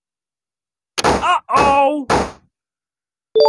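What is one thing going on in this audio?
A cheerful burst of game sound plays as confetti bursts.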